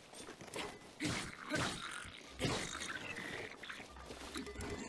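Swords clash with sharp metallic clangs.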